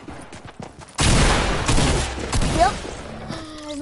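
Gunfire crackles loudly in rapid bursts.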